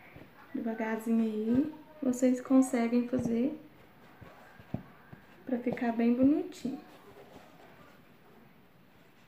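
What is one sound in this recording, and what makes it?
Paper or cloth rustles softly as hands fold it.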